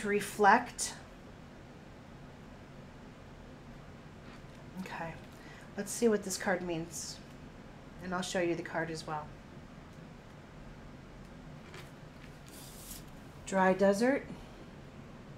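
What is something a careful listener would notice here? A middle-aged woman speaks calmly in short phrases, close by.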